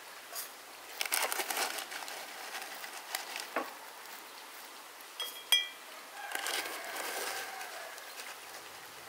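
A spoon clinks against a metal tin as loose tea is scooped.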